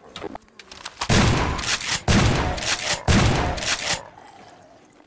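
A shotgun fires loud blasts several times.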